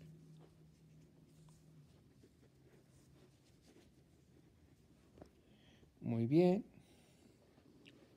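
A crochet hook softly rustles and tugs through yarn.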